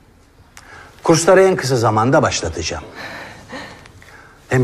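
A young woman speaks brightly.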